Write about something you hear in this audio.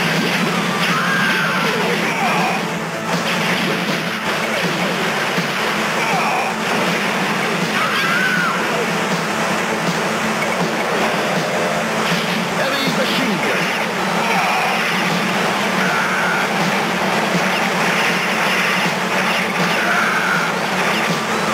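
Gunfire rattles rapidly in a retro arcade game.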